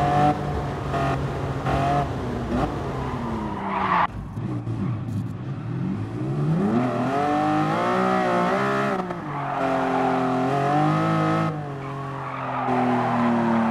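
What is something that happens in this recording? A sports car engine roars and revs up and down through the gears.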